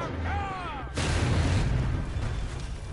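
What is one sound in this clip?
A heavy crash and explosion booms loudly.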